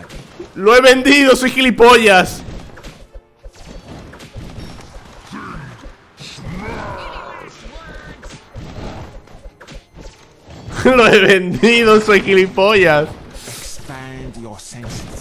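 Battle sound effects from a video game clash and pop.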